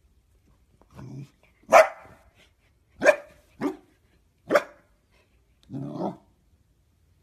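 A dog barks sharply several times, close by.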